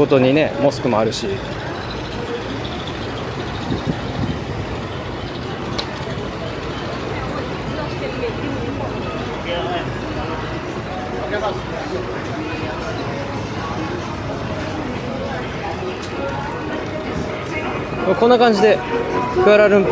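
A crowd of people chatters and murmurs outdoors in a busy street.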